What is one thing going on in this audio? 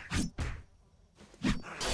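A zombie snarls and growls close by.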